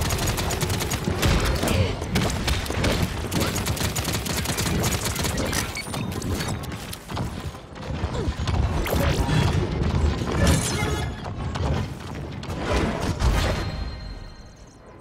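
Rapid gunfire and energy blasts crackle and boom.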